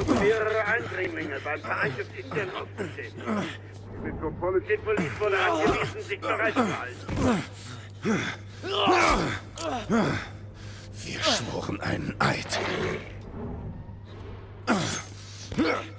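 Men struggle and scuffle, with thuds of blows.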